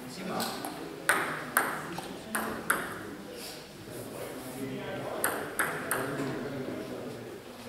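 A table tennis ball bounces a few times on a table in an echoing hall.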